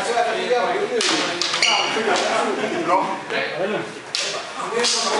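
Practice swords clack sharply against each other.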